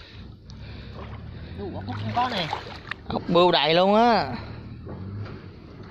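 Water splashes as a man wades in shallow water.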